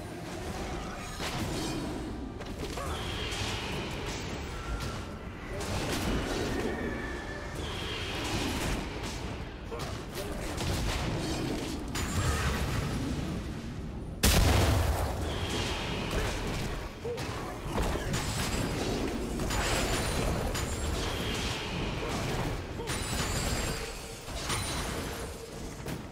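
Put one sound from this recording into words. Magic spells whoosh and crackle in a fast-paced fight.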